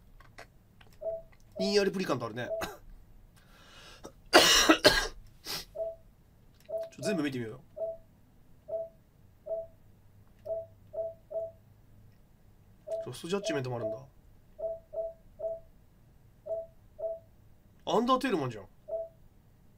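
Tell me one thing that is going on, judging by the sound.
Short menu beeps sound again and again as a cursor moves.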